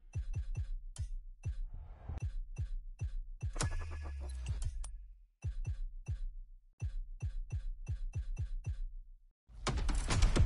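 Short electronic clicks tick as a game menu is scrolled.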